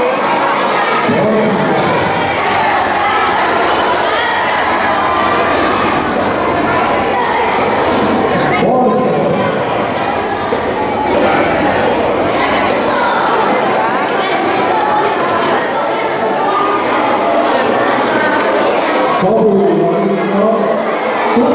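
An elderly man speaks into a microphone, heard through a loudspeaker in an echoing hall.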